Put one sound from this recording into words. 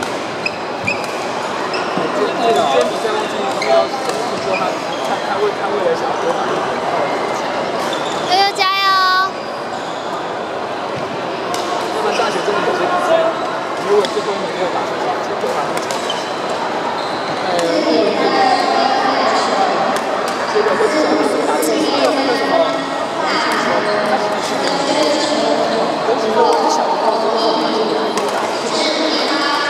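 Shuttlecocks are struck with rackets with sharp pops.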